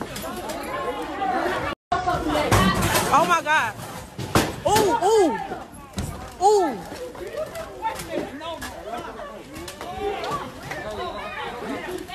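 Bodies thump and scuffle on the floor.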